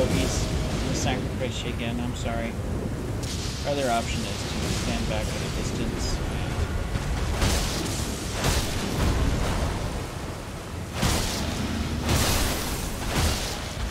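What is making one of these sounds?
A blade swishes through the air in quick strikes.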